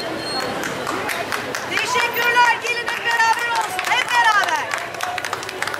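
A crowd of women chants slogans loudly together outdoors.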